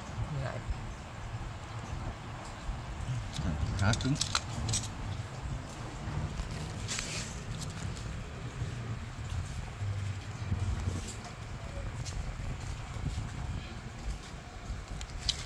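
A small knife scrapes and cuts into bark.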